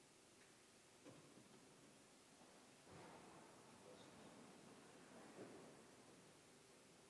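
A man speaks faintly and calmly at a distance in a large echoing hall.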